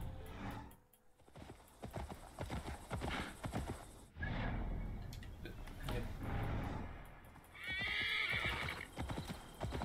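A horse's hooves thud on soft ground at a trot.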